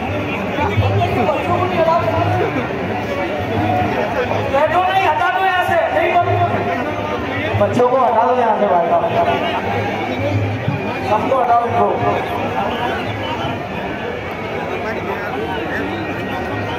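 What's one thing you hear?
A large crowd chatters and cheers loudly all around.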